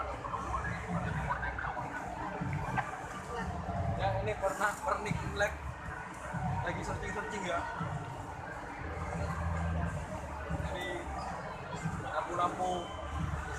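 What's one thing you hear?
People chatter nearby in a busy indoor space.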